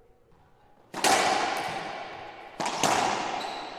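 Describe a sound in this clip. A racquet smacks a ball hard, ringing through an echoing court.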